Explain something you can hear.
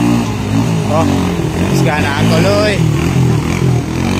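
Floodwater splashes as a motorcycle pushes through it.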